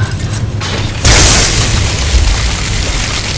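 Lightning blasts with a loud, sizzling crackle.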